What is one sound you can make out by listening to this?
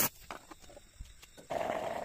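A metal file scrapes against metal.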